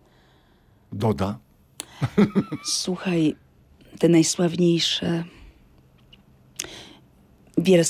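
An older woman speaks calmly into a close microphone.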